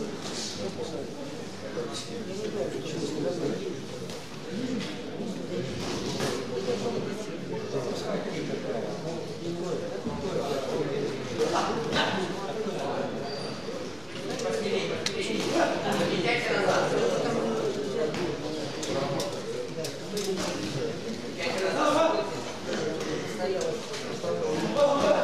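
A crowd of spectators murmurs and shouts in a large echoing hall.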